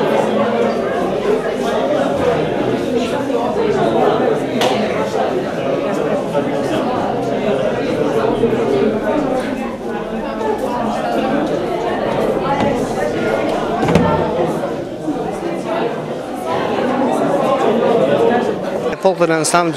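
A crowd of men and women chatter all around in a large echoing hall.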